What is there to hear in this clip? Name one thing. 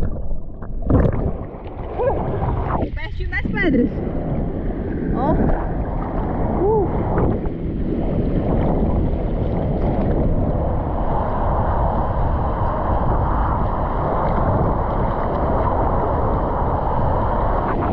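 Small waves slosh and splash close by at the surface.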